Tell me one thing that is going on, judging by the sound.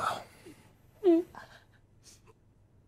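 A woman cries out in a sob.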